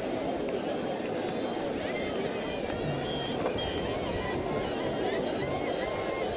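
A large outdoor crowd cheers and shouts steadily.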